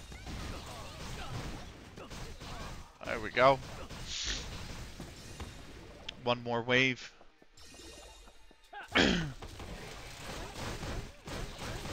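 Punches and blows thud and crack in a video game fight.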